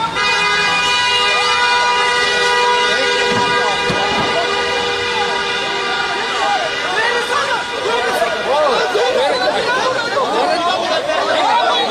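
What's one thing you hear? A crowd of men shouts and yells outdoors.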